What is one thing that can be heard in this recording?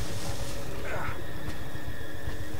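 A gunshot bangs once.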